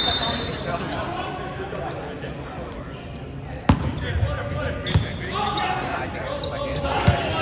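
Players call out and chatter across the court.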